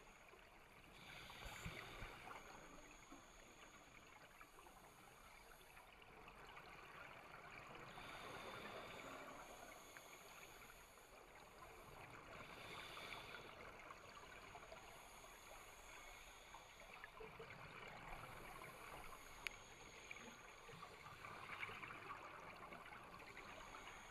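Air bubbles from a scuba diver's regulator gurgle and rush underwater in regular bursts.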